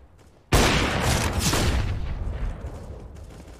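A sniper rifle fires a loud shot in a video game.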